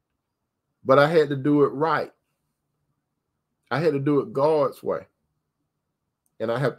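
A middle-aged man speaks calmly over an online call, in short phrases with pauses.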